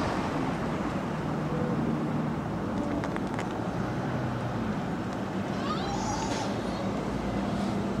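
A distant bus engine hums faintly as it approaches.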